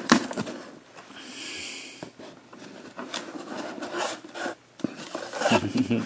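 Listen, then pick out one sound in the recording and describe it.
Cardboard scrapes and rubs as a box flap is handled.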